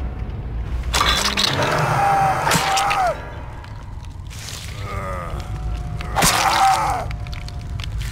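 A man screams in pain.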